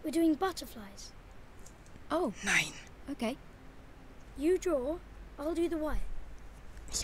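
A boy speaks with animation, close by.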